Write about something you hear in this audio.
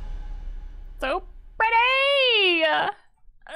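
A young woman exclaims with delight close to a microphone.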